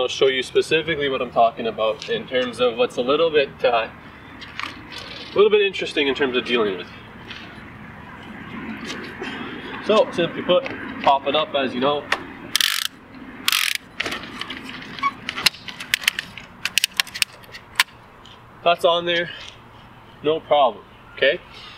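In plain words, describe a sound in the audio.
A young man talks calmly and clearly, outdoors.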